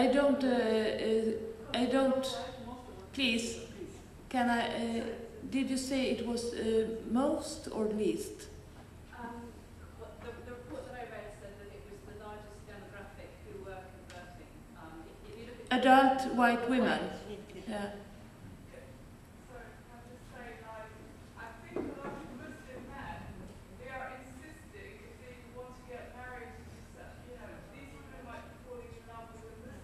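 A woman speaks steadily into a microphone in a large room, with pauses.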